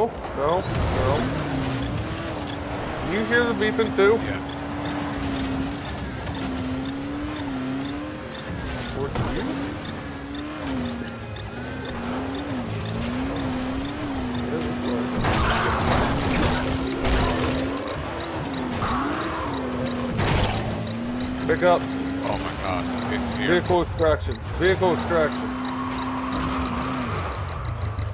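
A buggy engine drones and revs up and down.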